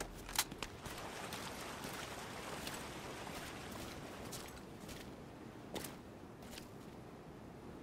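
Footsteps crunch over debris and rubble.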